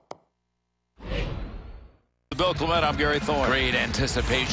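A crowd roars and cheers in a large arena.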